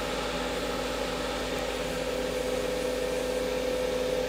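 A paper towel rubs and hisses against spinning wood.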